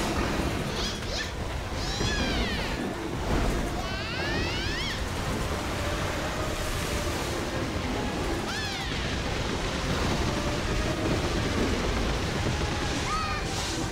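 Magic spells blast and crackle in a dense, chaotic battle.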